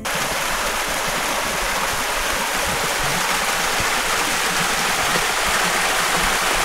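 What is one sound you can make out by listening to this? Wind rustles through bamboo leaves.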